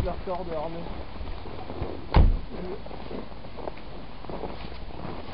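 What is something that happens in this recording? Small footsteps crunch in snow.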